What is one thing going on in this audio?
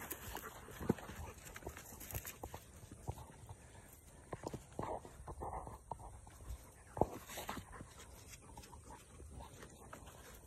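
Wet dogs' paws patter softly on a rubber mat.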